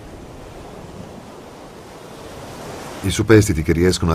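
Waves splash and break against rocks.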